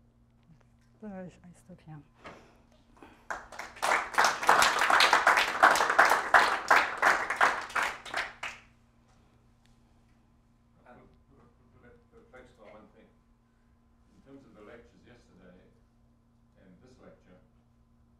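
A woman speaks calmly to an audience in a large room.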